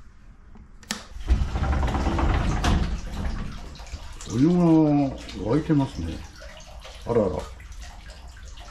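Hot water pours steadily into a bath with a loud splashing rush.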